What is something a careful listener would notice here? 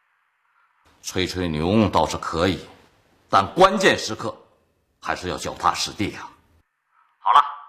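A middle-aged man speaks firmly into a telephone.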